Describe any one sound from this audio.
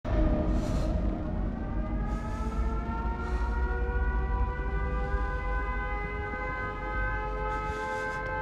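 Slow footsteps scuff across a hard floor.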